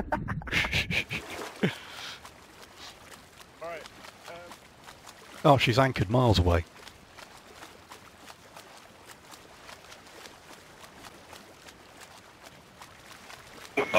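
Waves slosh and roll on the open sea.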